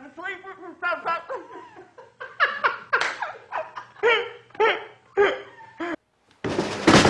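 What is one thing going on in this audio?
A young woman shouts angrily up close.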